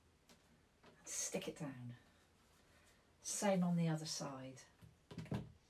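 An elderly woman speaks calmly close by.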